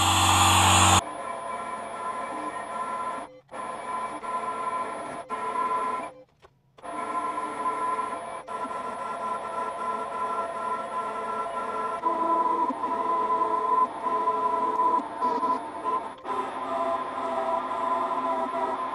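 A metal lathe whirs steadily as it cuts metal.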